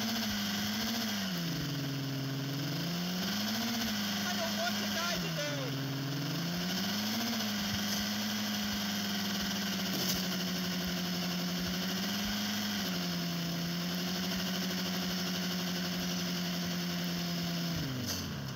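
A car engine hums steadily, revving up and down as it drives.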